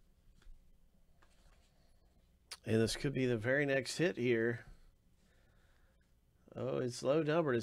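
Trading cards slide and rustle softly in gloved hands.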